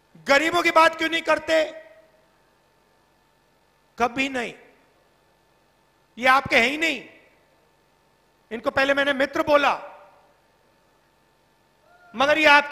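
A man speaks forcefully into a microphone over loudspeakers, in short bursts with pauses.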